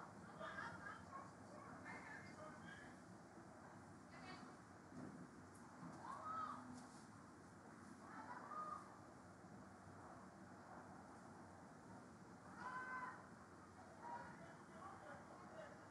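Young women shout short calls across an open outdoor field.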